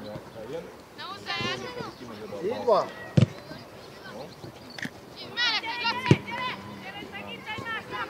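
Children shout to one another across an open field.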